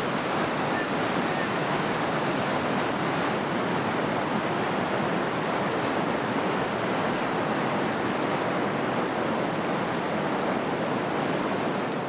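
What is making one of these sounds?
Water splashes hard against a raft.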